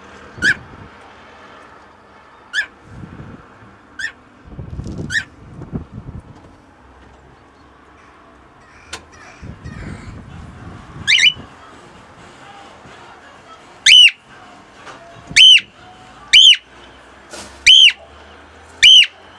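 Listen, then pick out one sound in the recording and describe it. A cockatiel chirps and whistles loudly close by.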